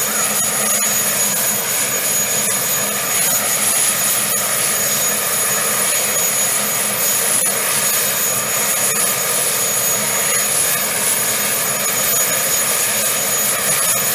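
A heavy tracked vehicle's engine runs with a steady, loud rumble.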